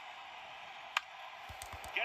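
A baseball bat cracks against a ball through a television speaker.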